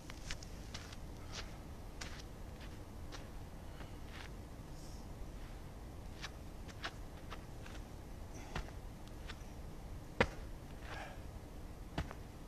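Sneakers scuff and tap on pavement outdoors.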